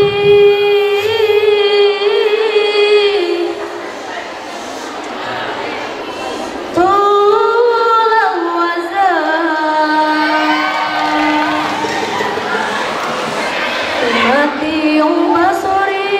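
Young girls sing together in long, held notes through a microphone.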